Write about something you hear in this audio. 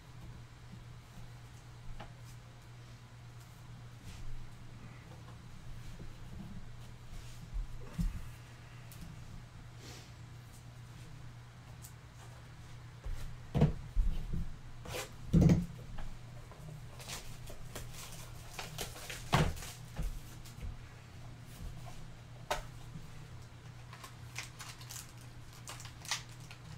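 Cards and plastic sleeves rustle and tap as hands handle them.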